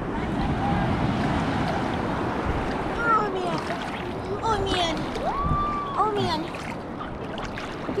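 A teenage girl speaks close by.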